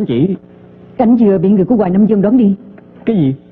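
A young woman answers calmly, close by.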